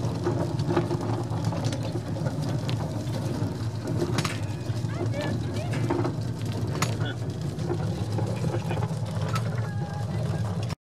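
A train rumbles steadily along the tracks, with occasional clacks.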